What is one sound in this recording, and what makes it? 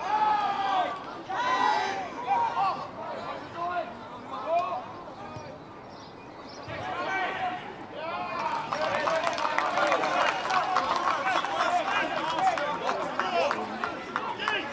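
Male rugby players shout to each other outdoors across an open field.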